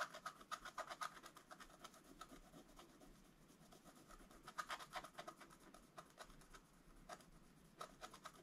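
A brush taps and scratches lightly on paper.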